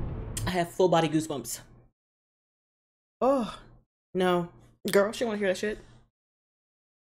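A young woman talks and exclaims with animation, close to a microphone.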